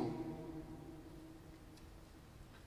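A man chants into a microphone in a large echoing hall, then falls silent.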